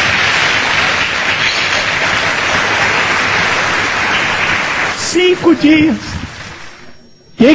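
A large audience applauds in an echoing hall.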